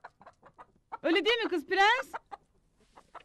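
A woman speaks with annoyance, close by.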